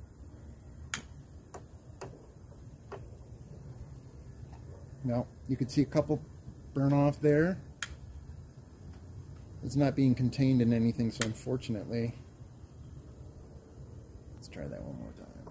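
A lighter clicks.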